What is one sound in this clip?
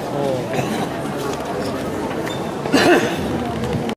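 A crowd of adults and children chatters in a large echoing hall.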